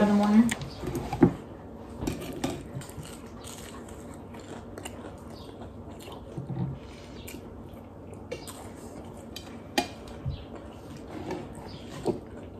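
A woman chews food with her mouth close by.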